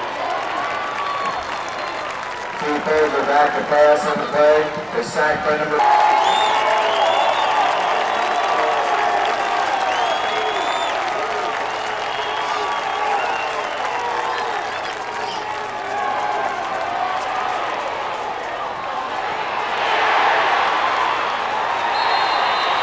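A large crowd of spectators chatters and calls out outdoors.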